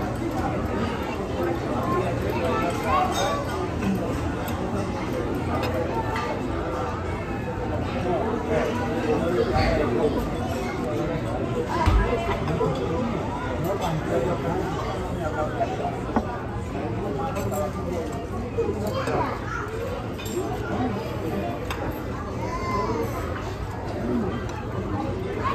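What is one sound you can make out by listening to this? A fork and knife scrape and clink against a plate.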